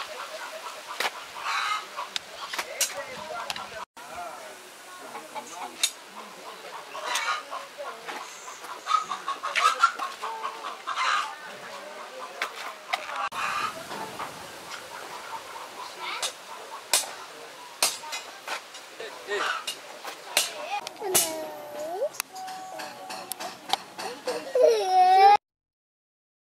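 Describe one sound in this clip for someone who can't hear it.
Young children talk and call out nearby.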